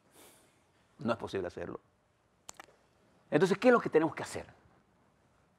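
An elderly man speaks calmly and firmly into a close microphone, in short bursts with pauses.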